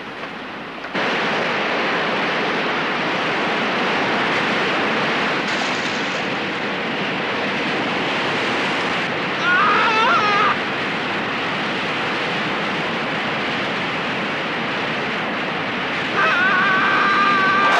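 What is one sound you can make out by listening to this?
A waterfall roars loudly and steadily.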